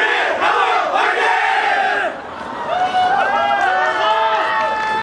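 Young women sing together through loudspeakers.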